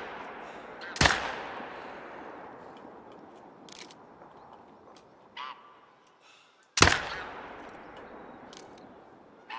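A rifle fires twice, each boom echoing and slowly fading.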